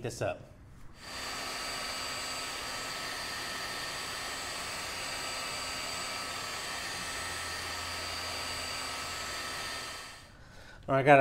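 A heat gun blows with a steady whir.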